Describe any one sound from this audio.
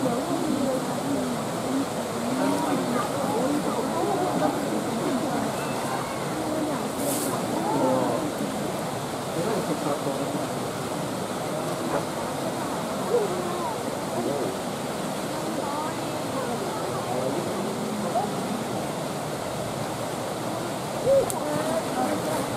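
Water laps and sloshes gently.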